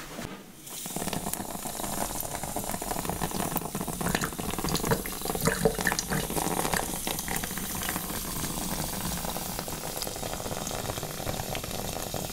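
Water sprays from a handheld shower head onto hair.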